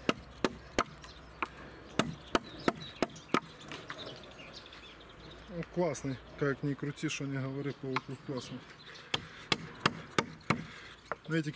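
A mallet taps sharply on a wooden chisel handle.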